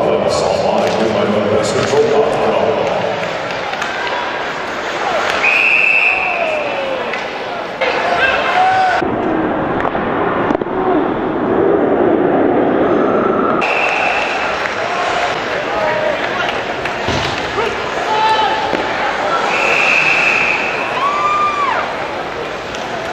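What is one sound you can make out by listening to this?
A crowd murmurs and cheers in a large echoing arena.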